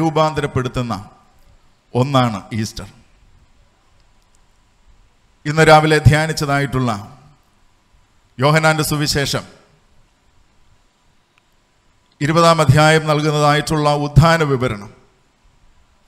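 A man preaches into a microphone in slow, emphatic phrases with long pauses.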